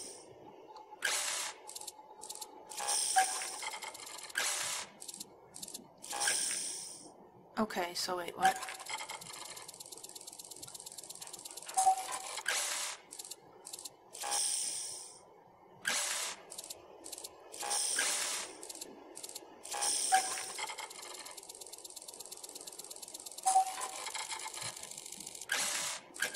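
A control panel gives short electronic beeps.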